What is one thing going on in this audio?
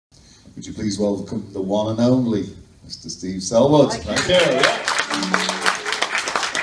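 A man sings loudly through a microphone.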